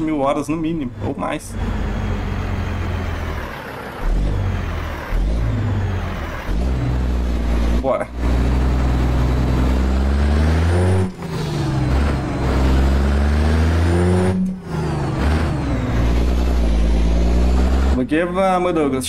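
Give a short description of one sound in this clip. A truck engine hums low and steady.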